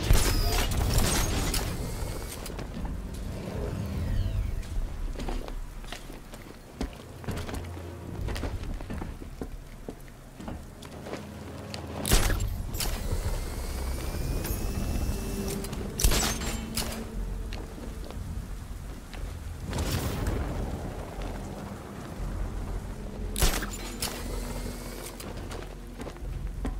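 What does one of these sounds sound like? Wind rushes loudly past during a fast glide.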